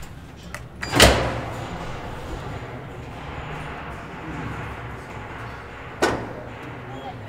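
A lift motor hums steadily as the car moves.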